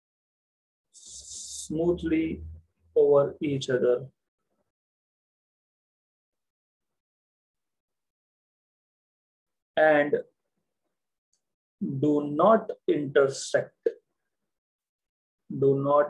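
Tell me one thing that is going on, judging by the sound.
A young man talks calmly into a close microphone, in short phrases with pauses.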